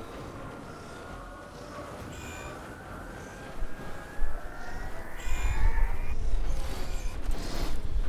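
An energy blade swooshes through the air.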